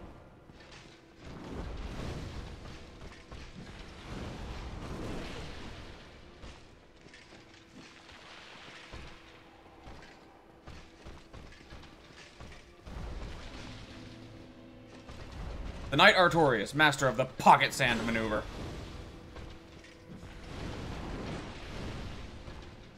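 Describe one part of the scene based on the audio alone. Heavy weapons whoosh and clash in a fight.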